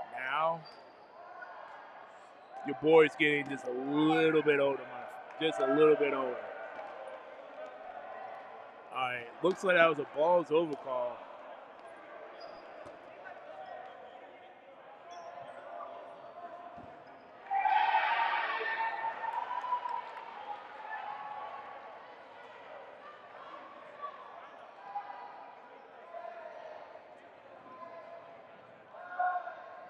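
A crowd of young people chatters in the background.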